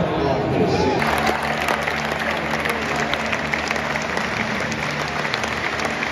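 A large crowd cheers and claps in an open stadium.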